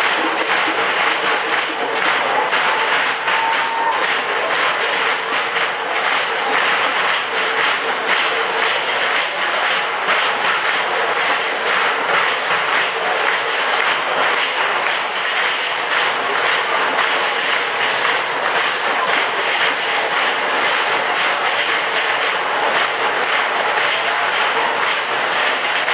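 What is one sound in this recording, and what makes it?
A large crowd chatters and cheers loudly in a big echoing hall.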